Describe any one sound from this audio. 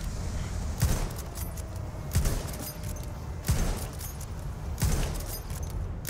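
A rifle bolt clicks as it is reloaded.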